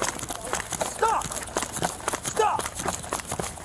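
A man shouts loudly and breathlessly close by.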